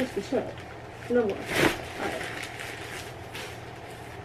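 Fabric rustles as clothes are handled.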